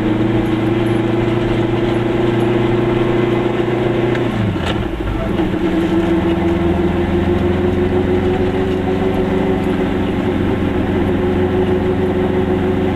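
A car engine drones steadily from inside the car, dropping in pitch as it shifts gear.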